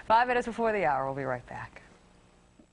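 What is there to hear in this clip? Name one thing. A woman speaks with animation, heard through a broadcast microphone.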